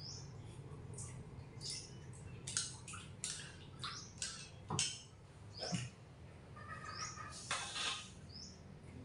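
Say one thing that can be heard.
Dishes and utensils clink and clatter close by.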